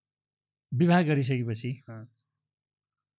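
A middle-aged man speaks calmly into a close microphone.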